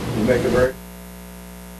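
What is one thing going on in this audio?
An elderly man speaks briefly, then stops.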